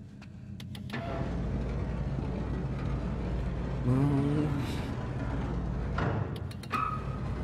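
A heavy cart rumbles as it is pushed across a hard floor.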